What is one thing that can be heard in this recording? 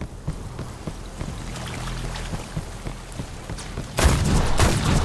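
Heavy footsteps clank on stone.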